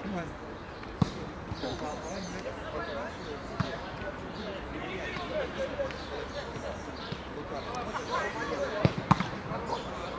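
A football is kicked hard with a dull thud.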